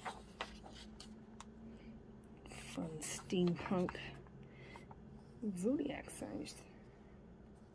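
A hand brushes and taps on paper pages.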